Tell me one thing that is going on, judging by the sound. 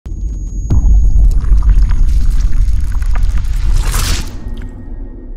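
Glass shatters with a loud crash.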